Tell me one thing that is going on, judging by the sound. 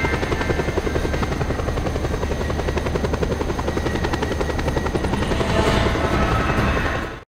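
Helicopter rotor blades thump loudly and steadily overhead.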